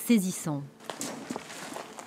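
Footsteps crunch on debris.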